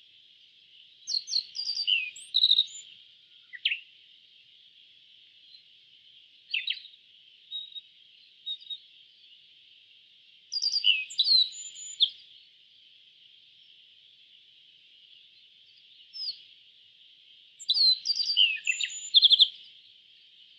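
A songbird sings short bursts of high, sweet chirps and trills close by.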